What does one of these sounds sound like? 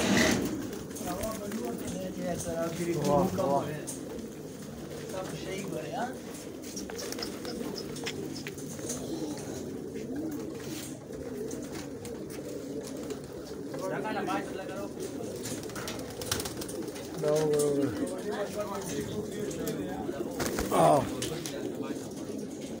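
A large flock of pigeons coos in a low, steady murmur.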